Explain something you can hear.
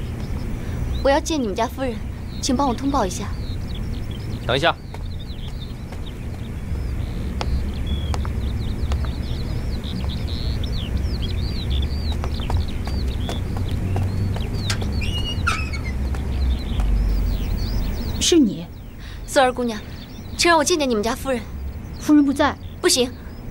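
A young woman speaks calmly and clearly close by.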